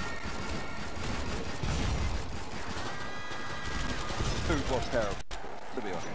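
Automatic rifle shots fire in quick bursts.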